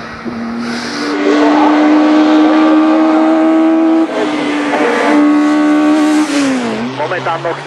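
A rally car engine revs hard and climbs in pitch as the car approaches.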